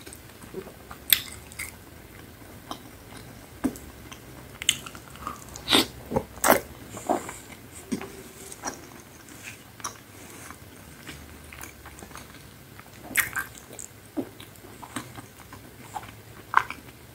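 A woman chews crunchy food close to a microphone, with crisp crunches and wet smacking.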